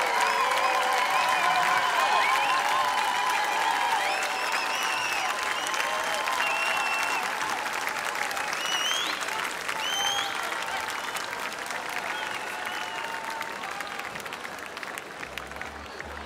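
A large crowd cheers and applauds outdoors, slowly fading.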